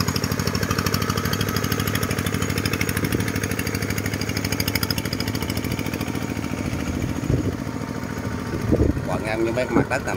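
A small diesel engine chugs steadily nearby, then fades as it moves away.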